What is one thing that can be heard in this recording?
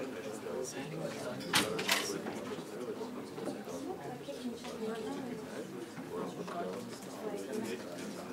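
Footsteps walk across the floor.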